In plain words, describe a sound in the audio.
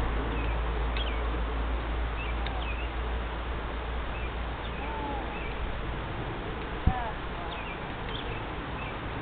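A horse's hooves thud softly on sand in the distance.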